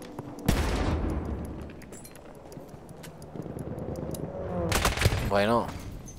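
A rifle fires a loud gunshot that echoes.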